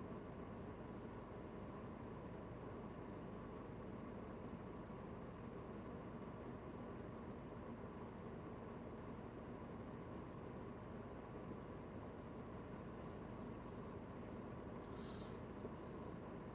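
A car engine idles with a steady low hum, heard from inside the car.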